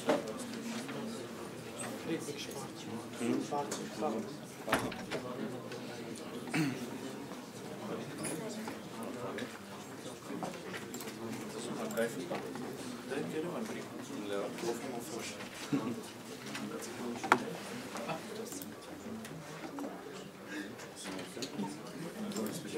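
Several young men and women murmur and chat nearby.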